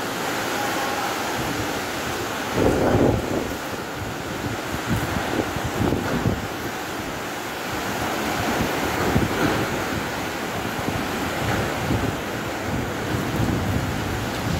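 Heavy rain pours steadily.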